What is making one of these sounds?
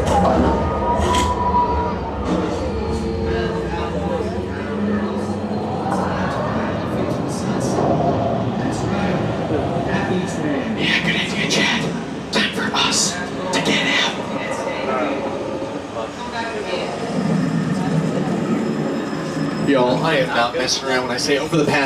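A ride vehicle rumbles along steadily.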